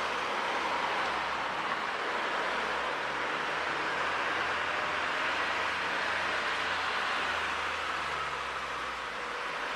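A car engine hums as a car drives past close by.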